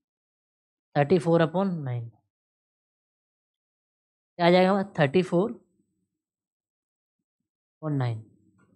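A young man speaks calmly and clearly into a close microphone, in short phrases with pauses.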